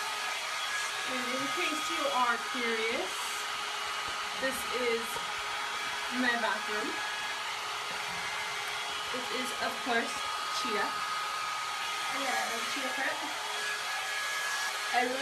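A young woman speaks expressively close to the microphone.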